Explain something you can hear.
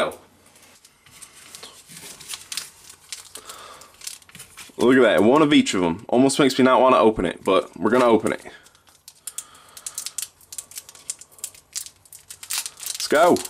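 A foil card pack crinkles and rustles in someone's hands.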